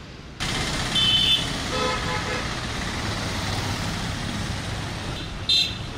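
Horns honk in short bursts.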